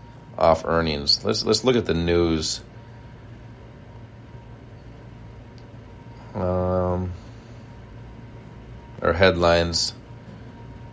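A man speaks into a microphone in short bursts.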